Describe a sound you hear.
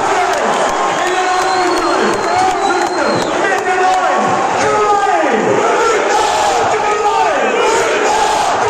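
Fans whistle shrilly in the crowd.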